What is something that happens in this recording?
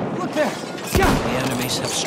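A rifle fires a single loud shot close by.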